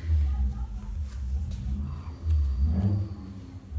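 Playing cards slide and tap softly on a cloth-covered table.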